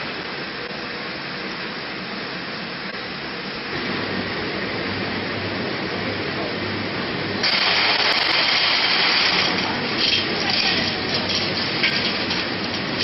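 A rotating machine drum hums and rumbles steadily.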